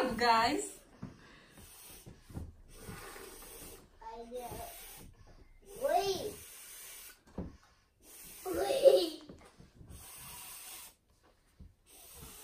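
A boy blows air into a large balloon.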